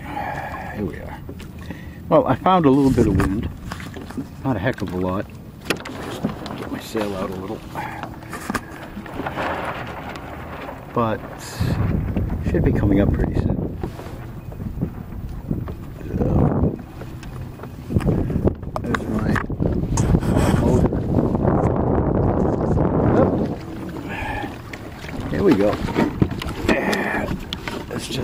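Small waves lap against a kayak hull.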